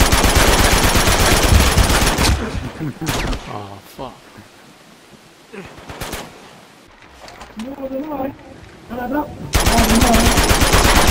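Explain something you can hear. An automatic rifle fires rapid bursts of loud shots.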